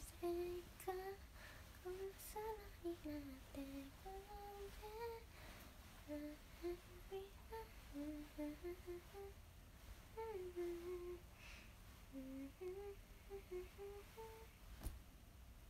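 A young woman sings softly, close to the microphone.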